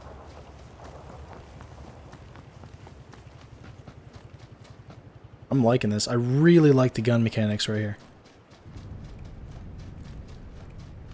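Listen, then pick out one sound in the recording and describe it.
Footsteps crunch quickly through dry grass.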